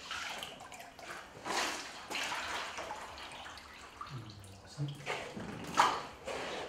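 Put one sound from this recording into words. Water splashes and drips into a tank.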